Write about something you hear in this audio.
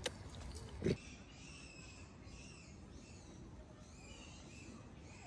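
A macaque squeals with a high, wavering cry.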